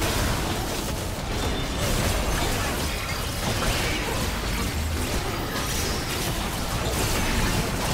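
Spell effects crackle and boom as game characters fight.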